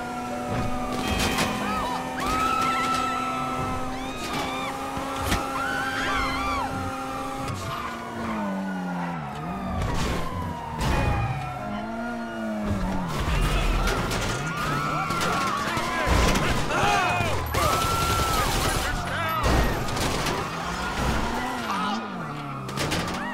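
A car engine revs and roars as a car speeds along.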